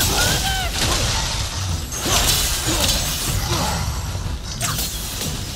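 Blows and impacts crash during a fight.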